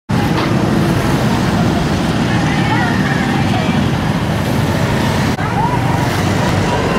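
A crowd of women murmurs and chatters outdoors.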